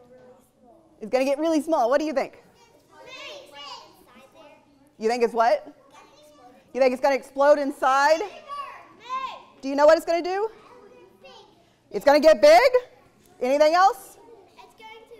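A young boy speaks up nearby.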